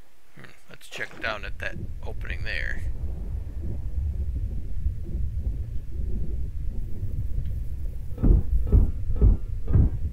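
Water rumbles in a low, muffled underwater drone.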